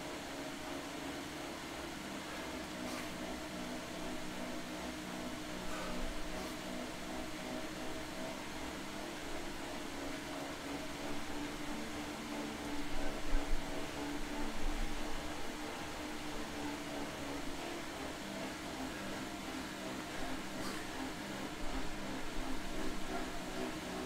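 A smart trainer whirs steadily under pedalling.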